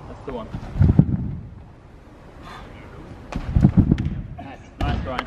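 A man bounces heavily on a trampoline with dull thumps.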